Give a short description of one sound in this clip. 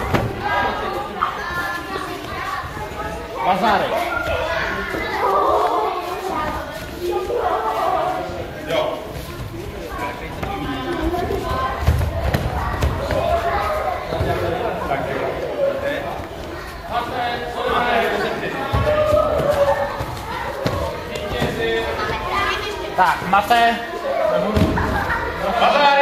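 Bodies thud and rustle on a padded mat as two children grapple.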